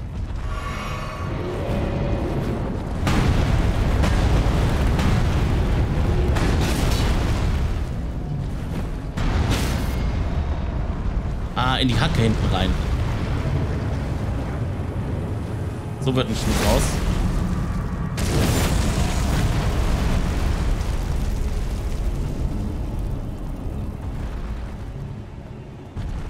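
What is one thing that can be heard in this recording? A low rumble of heavy stomping footsteps goes on.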